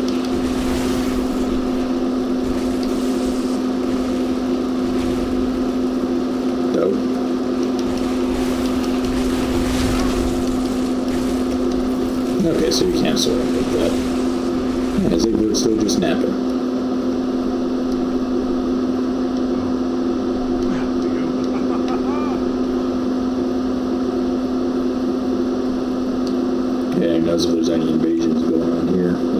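A man talks calmly into a microphone, close up.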